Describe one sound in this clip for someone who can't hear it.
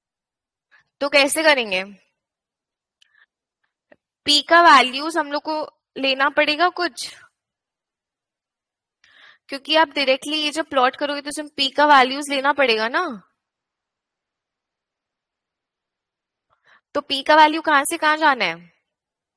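A woman speaks calmly in short bursts through an online call microphone.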